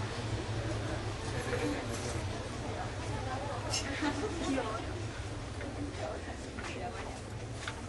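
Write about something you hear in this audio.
A crowd of men and women chatter and greet each other indoors.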